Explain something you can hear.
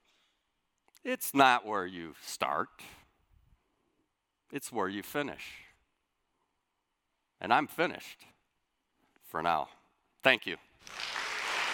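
A middle-aged man speaks slowly and deliberately through a microphone in a large hall.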